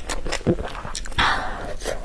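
A crispy fried roll crunches as a young woman bites into it.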